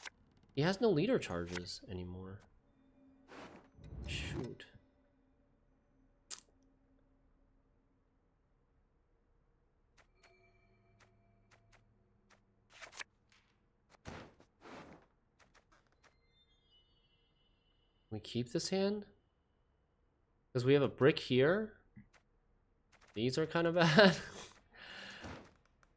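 A young man talks casually into a close microphone, in short bursts with pauses.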